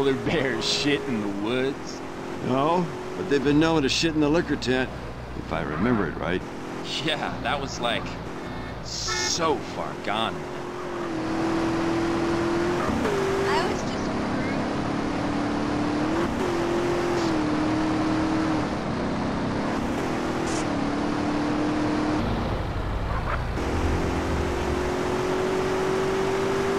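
A car engine roars steadily, rising and falling in pitch as it shifts gears.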